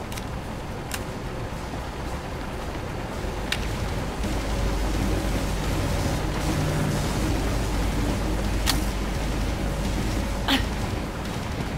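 Heavy footsteps thud across a hard floor.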